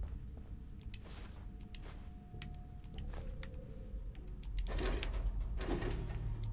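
Small metal objects rattle and clink as they are picked up.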